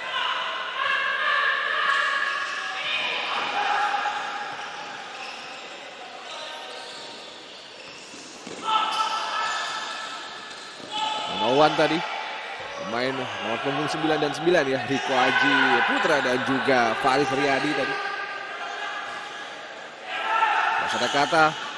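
A ball thuds as players kick it on an indoor court.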